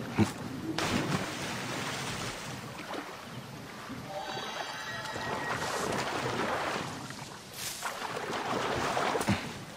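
A person splashes while swimming through water.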